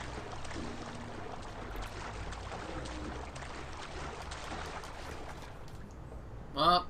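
Water splashes as a person swims.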